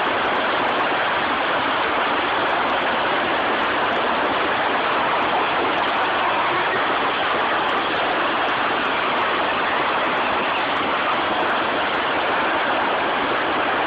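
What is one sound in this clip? A torrent of water and debris roars loudly and steadily.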